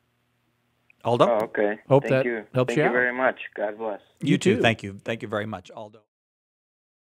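A second man speaks calmly into a close microphone.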